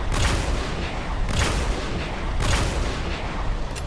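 A heavy gun fires loud booming shots.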